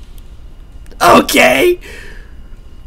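A young man laughs briefly, close to a microphone.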